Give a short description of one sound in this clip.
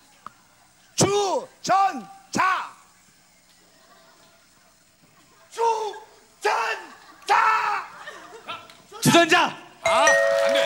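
A young man shouts words loudly into a microphone.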